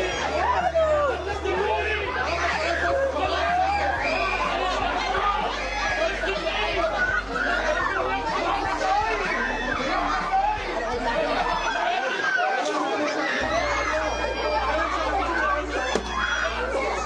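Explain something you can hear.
A crowd of women and girls talk and shout excitedly close by.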